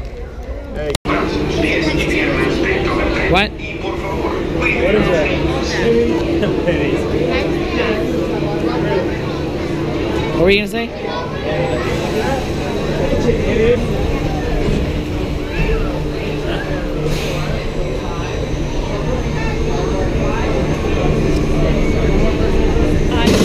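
A crowd chatters and echoes under a large roof.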